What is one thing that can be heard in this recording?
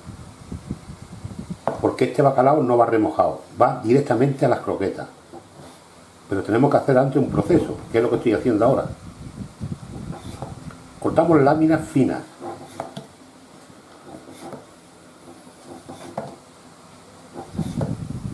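A knife chops on a wooden board.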